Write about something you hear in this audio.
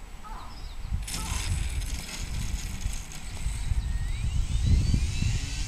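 A model plane's wheels rumble over grass as it lands.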